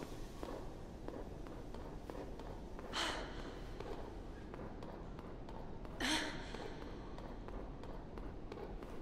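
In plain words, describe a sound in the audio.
High heels click on a hard floor at a steady walking pace.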